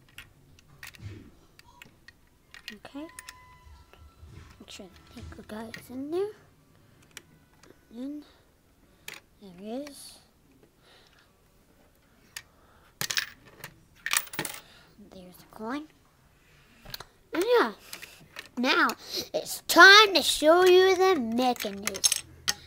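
Plastic toy bricks click and clatter as hands handle them.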